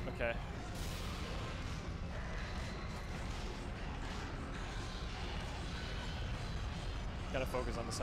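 A video game plays clashing combat sounds.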